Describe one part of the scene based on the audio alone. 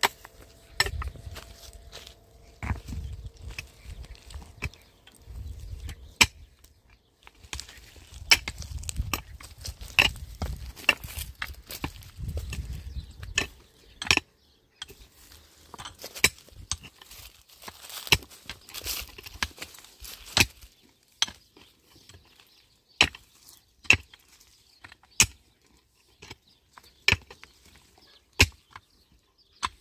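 A pickaxe strikes stony soil with sharp, repeated thuds.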